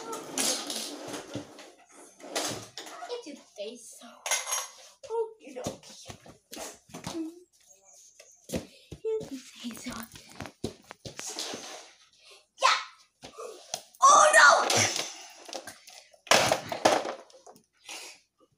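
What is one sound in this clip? A young boy talks and squeals excitedly nearby.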